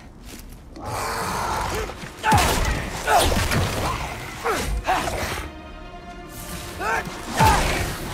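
Blows and clashes of a fight ring out.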